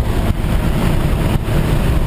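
Wind roars loudly past an open aircraft door.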